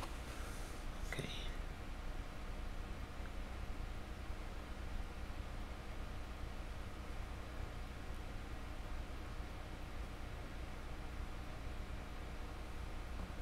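A paintbrush brushes softly over a hard surface.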